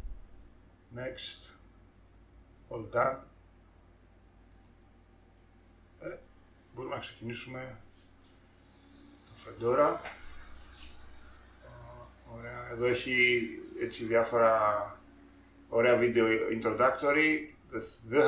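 A middle-aged man speaks calmly and closely into a microphone, with pauses.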